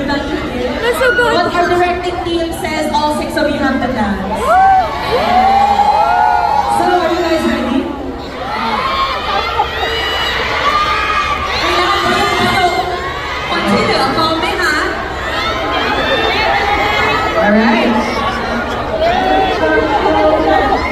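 A crowd of young women screams and cheers.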